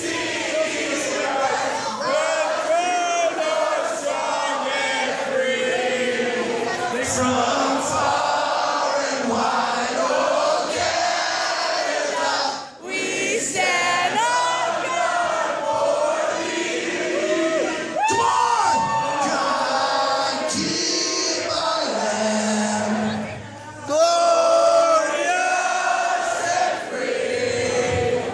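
A crowd of men and women cheers and shouts loudly all around.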